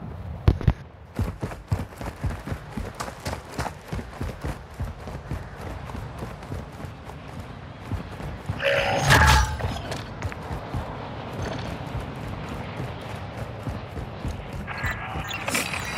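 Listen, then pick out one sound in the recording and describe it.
Quick footsteps run across hard concrete.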